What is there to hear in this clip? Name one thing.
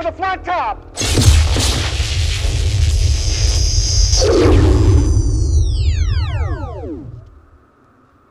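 A loud energy blast roars, then whines downward and dies away.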